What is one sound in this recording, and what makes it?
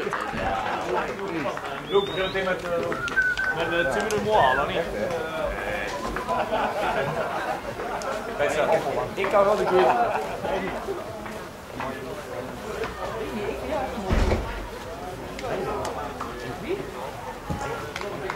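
Young players shout and call out to each other outdoors on an open field.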